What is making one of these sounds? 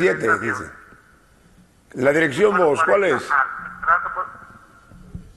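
A middle-aged man talks with animation into a microphone.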